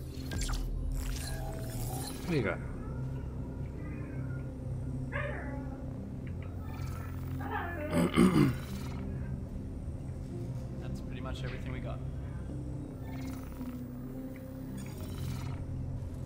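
Electronic interface sounds chime and whoosh as a menu opens and closes.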